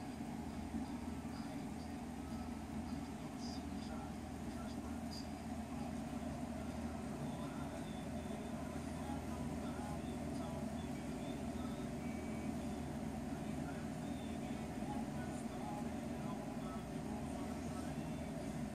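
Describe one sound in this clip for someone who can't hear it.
A cockatoo makes soft, quiet chirps close by.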